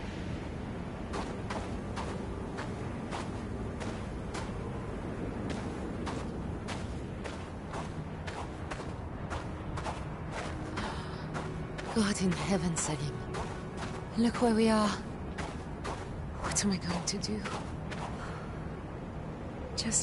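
Footsteps crunch steadily on sandy ground.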